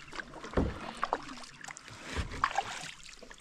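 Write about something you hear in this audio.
A paddle splashes in water.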